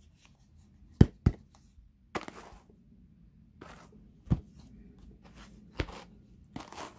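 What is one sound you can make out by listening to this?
Wooden carders knock together.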